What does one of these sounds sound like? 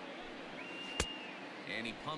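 A bat cracks sharply against a ball.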